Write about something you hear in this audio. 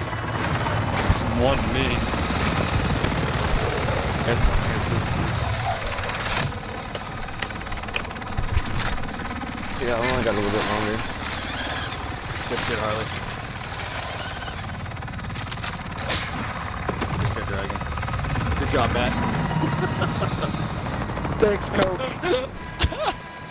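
A helicopter's rotor thumps and roars overhead.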